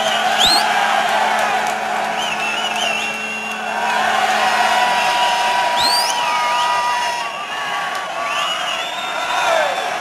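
Fans whistle shrilly in a crowd.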